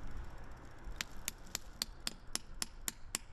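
A hammer taps a metal spout into a tree with quick, sharp knocks.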